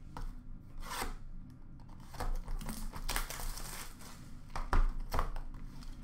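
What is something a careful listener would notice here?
Trading cards rustle and slide as hands sort them.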